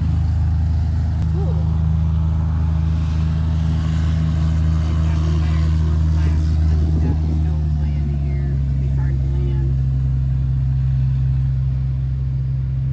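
A vehicle engine hums steadily at close range.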